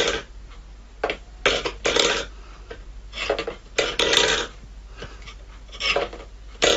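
A metal bowl scrapes and rattles on a wooden floor.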